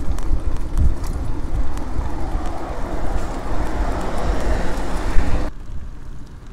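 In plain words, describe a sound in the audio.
A bus drives past on the road.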